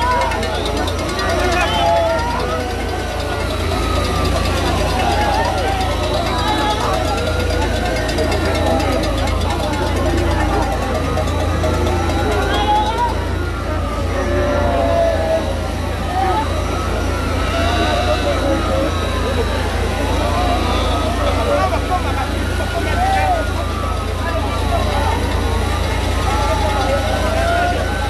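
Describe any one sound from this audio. A large crowd chatters and calls out outdoors close by.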